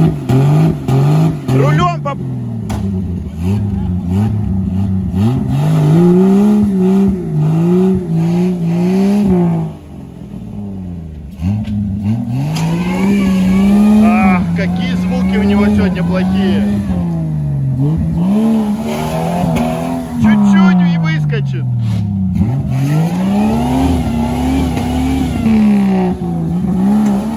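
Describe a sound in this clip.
Tyres spin and churn through mud.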